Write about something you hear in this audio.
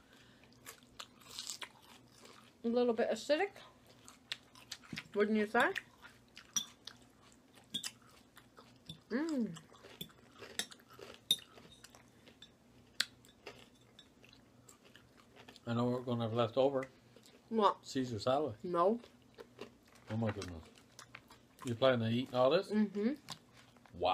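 A woman chews crunchy salad close to a microphone.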